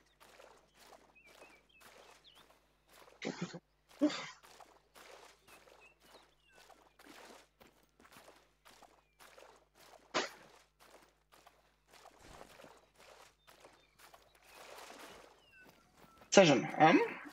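Footsteps splash steadily through shallow water.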